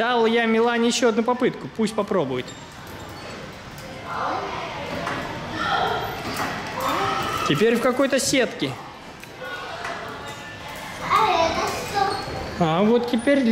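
A young child talks and squeals excitedly nearby.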